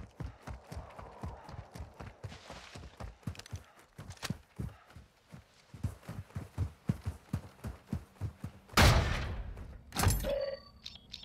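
Footsteps thud quickly on dirt.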